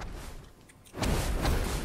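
A fiery blast whooshes and crackles.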